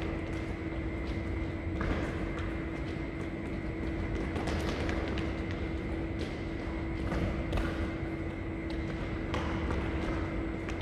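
Sneakers squeak and thud on the court floor.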